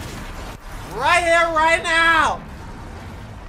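A man exclaims loudly in a high, drawn-out voice.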